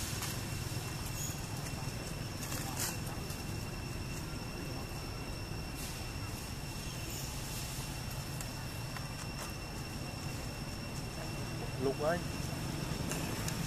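Leaves and branches rustle softly as a monkey shifts about in a tree.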